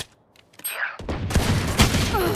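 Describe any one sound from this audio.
A pistol fires with a sharp crack.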